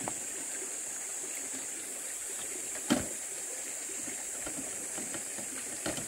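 A wheelbarrow wheel rattles over rough dirt.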